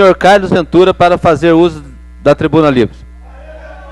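A man speaks loudly and close into a microphone.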